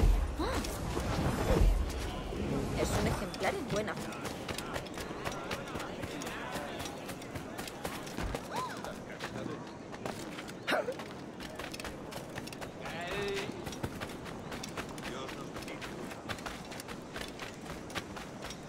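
Footsteps run quickly over dirt and stone.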